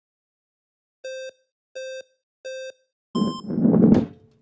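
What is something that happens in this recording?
Electronic beeps count down, ending on one higher beep.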